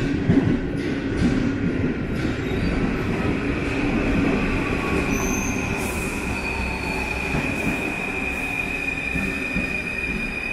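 A metro train rumbles into an echoing underground station.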